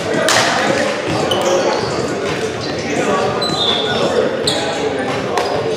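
Young men shout and talk over one another in a large echoing gym.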